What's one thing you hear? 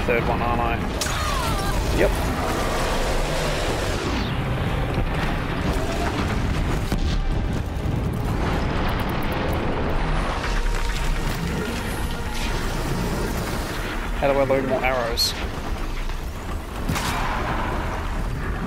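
Explosions boom in a game battle.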